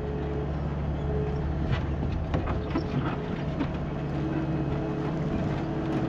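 A diesel engine idles with a steady low rumble close by.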